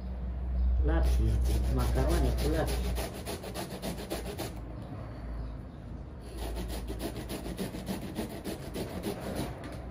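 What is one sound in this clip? A woman grates vegetables with quick rasping strokes.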